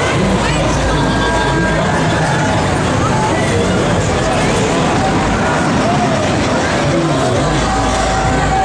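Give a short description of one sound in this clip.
A swinging fairground ride whooshes and rumbles as it swings.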